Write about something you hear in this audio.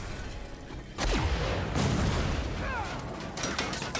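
A second car explodes with a heavy boom.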